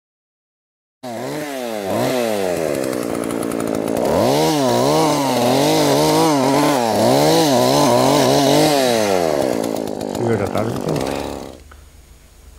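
A chainsaw revs and whines as it cuts through wood.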